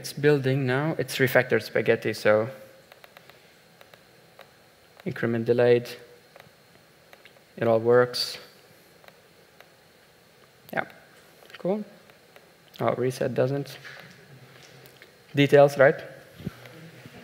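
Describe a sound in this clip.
A man speaks calmly into a microphone in a large hall, in short bursts with pauses.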